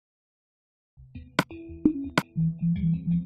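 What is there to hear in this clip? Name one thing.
A game menu clicks open.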